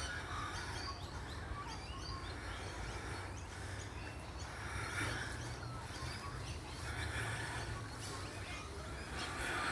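Small birds chirp and twitter nearby.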